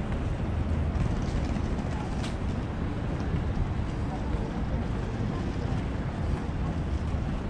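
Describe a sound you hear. Wind blows steadily outdoors, rumbling loudly.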